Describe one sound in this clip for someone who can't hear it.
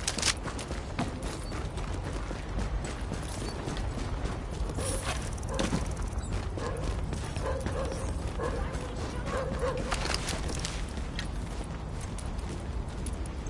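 Footsteps crunch through snow at a steady run.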